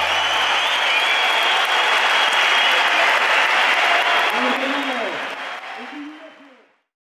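A large crowd cheers and roars in a big open arena, then fades away.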